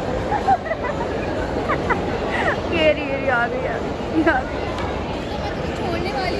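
Many voices chatter and echo in a large, busy indoor hall.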